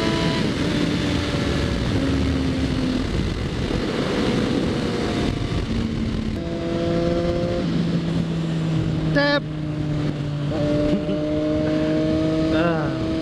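Wind rushes loudly past a rider's helmet.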